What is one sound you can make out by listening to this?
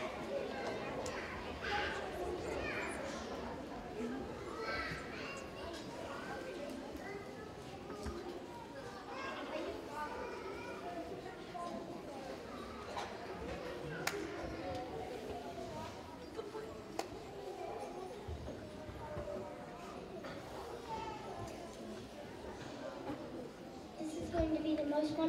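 A large children's choir sings together in an echoing hall.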